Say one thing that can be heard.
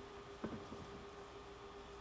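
A violin plays a few quiet notes.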